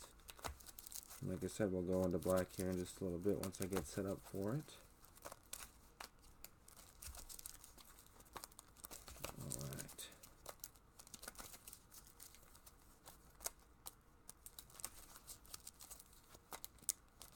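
Playing cards shuffle and riffle softly.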